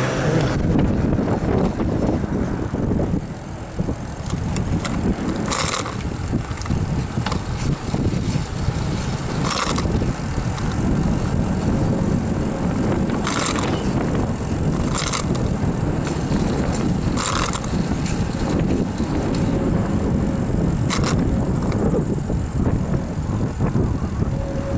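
Wind buffets the microphone outdoors during a bicycle ride.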